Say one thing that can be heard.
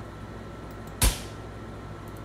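A door opens with a sharp click.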